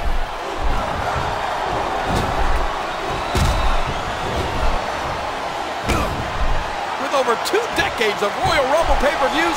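Heavy body blows thud and slam.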